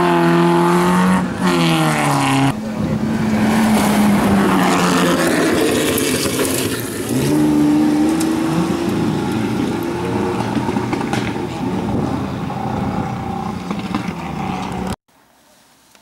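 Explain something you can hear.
A car engine revs hard and roars nearby.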